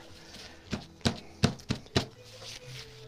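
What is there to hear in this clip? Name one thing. A paper towel dabs softly against paper.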